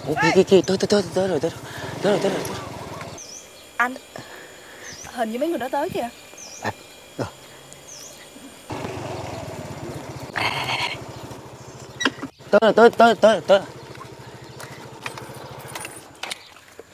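A motorbike engine hums as it rolls up and idles.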